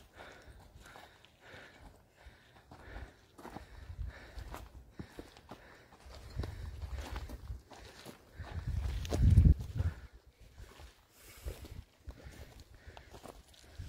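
Footsteps crunch on a rocky, gravelly trail.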